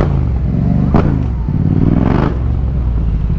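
A motorcycle engine revs up briefly.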